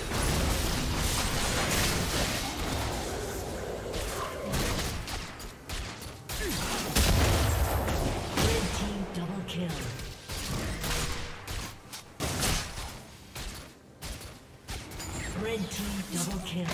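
Game spell effects burst and clash in a fast battle.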